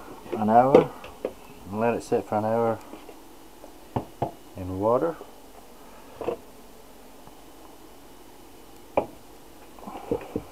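Plastic bowls knock and clatter against each other.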